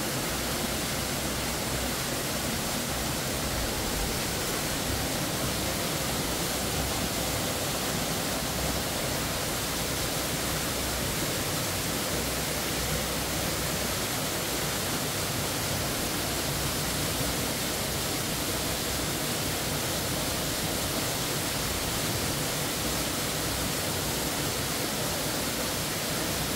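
A waterfall rushes and splashes onto rock.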